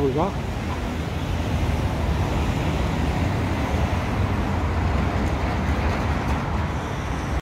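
City traffic hums steadily nearby.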